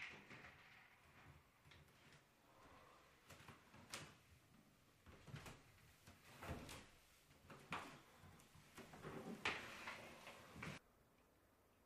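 Bare feet thud and shuffle on a wooden floor.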